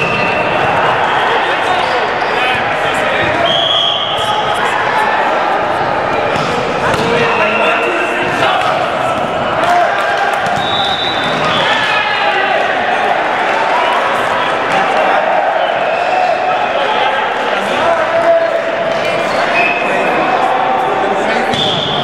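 Men talk and call out to each other in a large echoing gym.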